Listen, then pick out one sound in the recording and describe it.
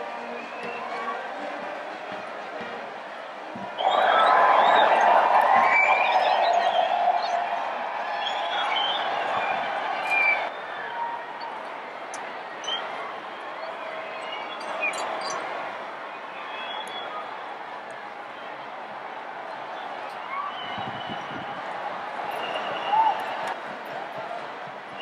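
A large crowd chatters and shouts across the water outdoors.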